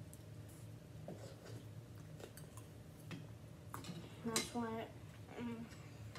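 Two boys slurp noodles.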